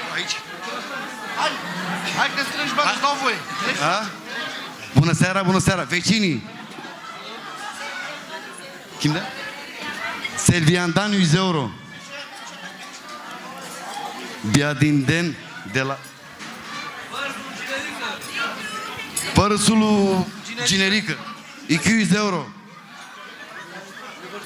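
Guests chatter in the background of a busy room.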